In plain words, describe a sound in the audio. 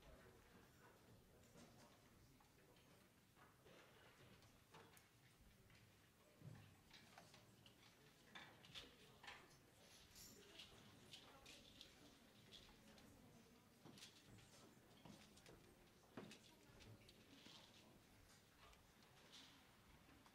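A crowd of young people murmurs and chats quietly in a large echoing room.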